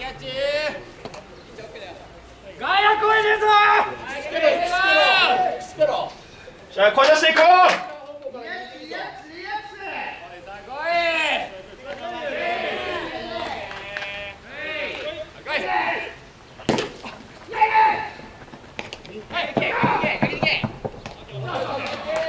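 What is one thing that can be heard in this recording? Young men shout and cheer loudly outdoors, calling out across an open field.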